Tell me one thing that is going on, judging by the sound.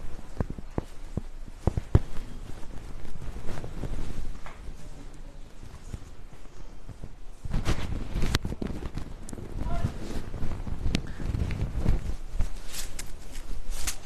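Silk fabric rustles and swishes as it is handled.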